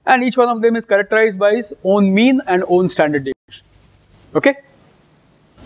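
A man speaks with animation through a clip-on microphone.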